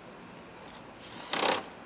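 A power tool whirs briefly.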